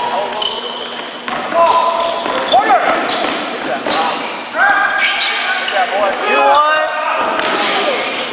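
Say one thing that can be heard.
Young men shout to each other in a large echoing gym.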